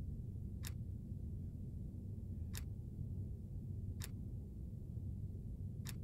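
A soft menu tick sounds each time the selection changes.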